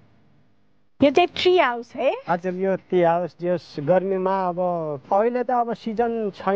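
A woman speaks with animation, close to the microphone.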